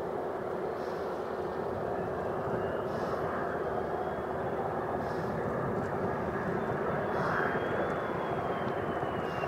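A jet engine whines high and shifts in pitch as the plane draws near.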